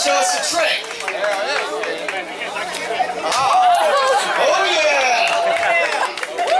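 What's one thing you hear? A crowd of men and women talk and shout excitedly close by, outdoors.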